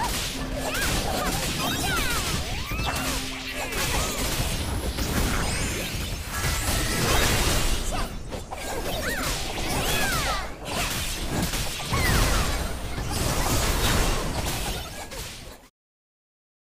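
Game combat effects whoosh, clash and burst in rapid succession.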